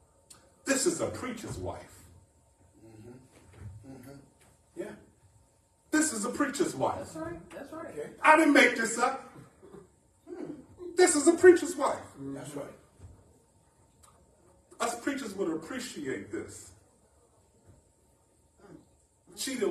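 A man preaches with animation into a microphone, in bursts with pauses.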